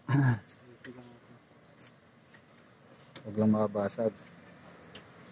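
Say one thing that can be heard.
A wrench clicks and scrapes against a metal bolt.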